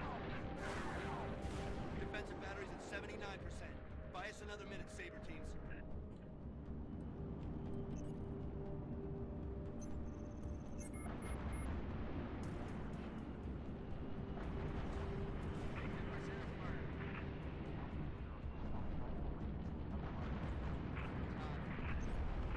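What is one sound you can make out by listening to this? Missiles whoosh past.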